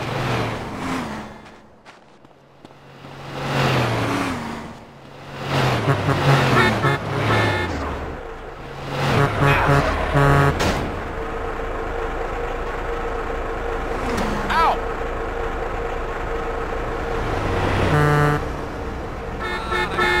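Footsteps thud on the road.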